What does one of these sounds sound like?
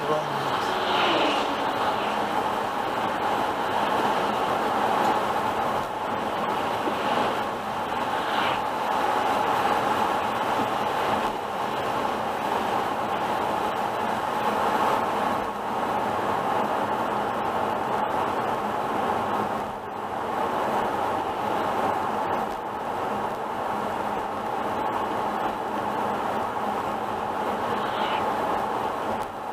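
Raindrops patter on a windscreen.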